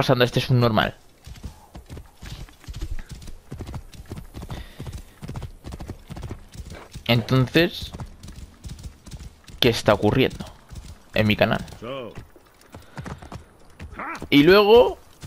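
A horse's hooves thud steadily on sand as it gallops.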